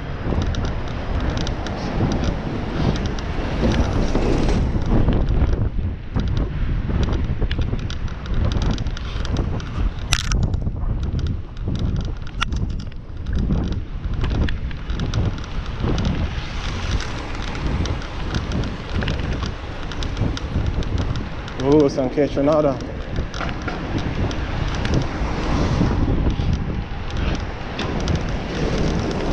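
Wind rushes past a moving bicycle outdoors.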